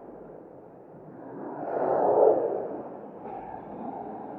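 A car passes by on the street and fades.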